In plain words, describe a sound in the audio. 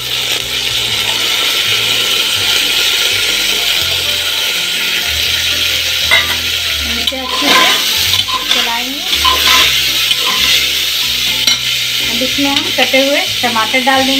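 Food sizzles and fries in a hot pot.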